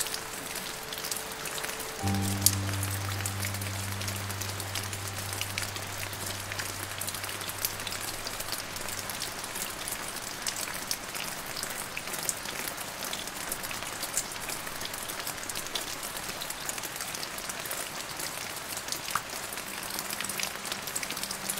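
Steady rain patters and drips on leaves and branches outdoors.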